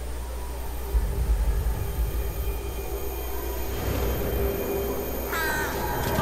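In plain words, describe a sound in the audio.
A storm wind roars.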